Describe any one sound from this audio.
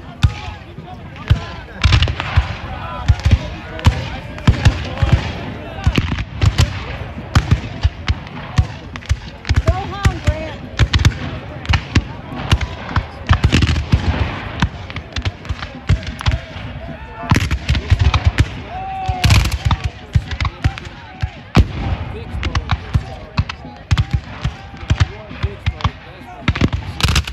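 Muskets fire in ragged volleys outdoors.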